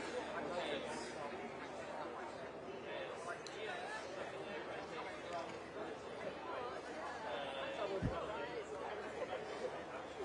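A large audience chatters in many overlapping voices inside a big echoing hall.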